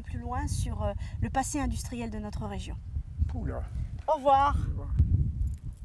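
A middle-aged woman talks with animation close to a microphone.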